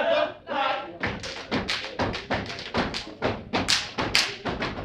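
Feet stomp and hands clap in a fast, steady rhythm.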